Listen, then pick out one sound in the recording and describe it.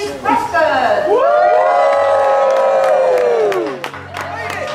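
A group of adults cheers loudly.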